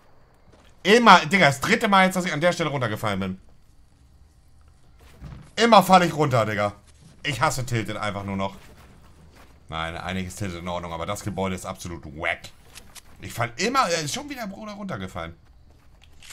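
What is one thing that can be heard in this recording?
A man talks loudly and with animation, close to a microphone.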